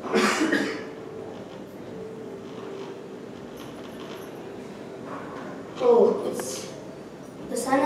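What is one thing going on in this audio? Children murmur and chatter quietly.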